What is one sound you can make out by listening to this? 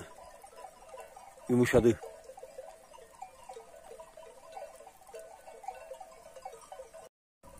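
A flock of sheep bleats in the distance.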